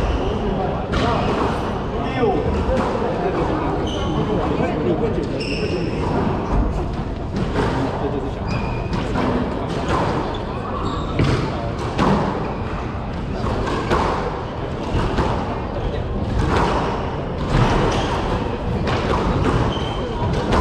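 A squash ball smacks hard against the walls, echoing in a hard-walled room.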